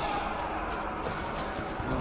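Gunshots crack in an echoing stone tunnel.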